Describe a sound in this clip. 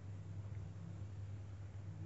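Milk pours with a quiet trickle.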